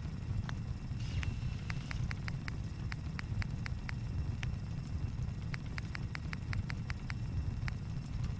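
Short menu clicks tick quickly.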